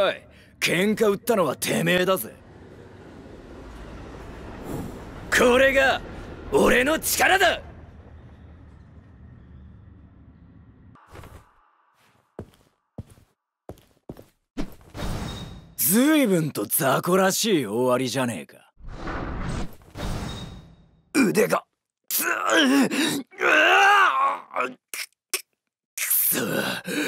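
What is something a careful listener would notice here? A young man speaks in a cocky, taunting voice, close and clear.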